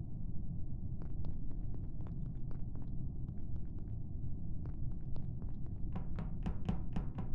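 Light footsteps patter quickly across a hard floor.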